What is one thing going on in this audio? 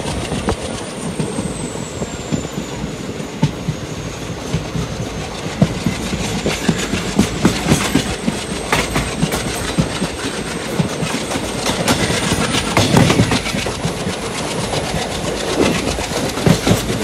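A train rumbles and clatters steadily over the rails.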